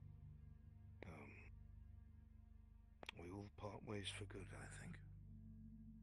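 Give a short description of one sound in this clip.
A young woman speaks casually into a microphone.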